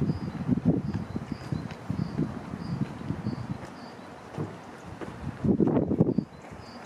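A level crossing alarm beeps in a steady repeating pattern.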